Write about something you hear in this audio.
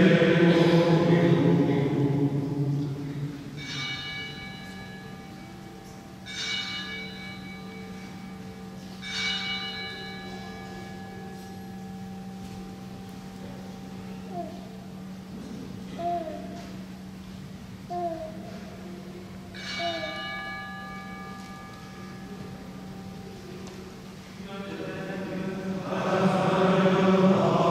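A man chants into a microphone in a large echoing hall.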